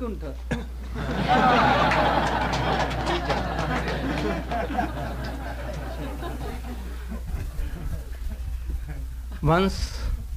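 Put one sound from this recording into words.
A group of men chatter and laugh close by.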